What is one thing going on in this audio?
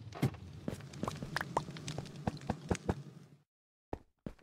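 A fire crackles and pops.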